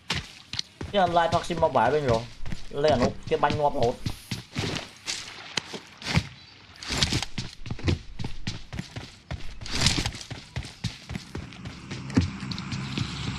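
Footsteps thud rapidly on wooden floors and dirt.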